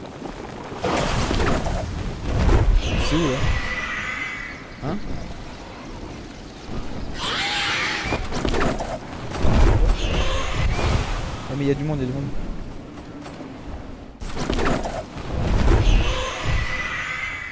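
Wind rushes loudly during a fall through the air.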